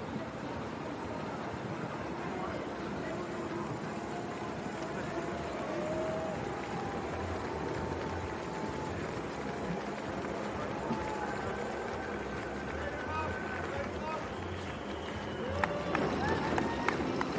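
Running feet patter on a paved road.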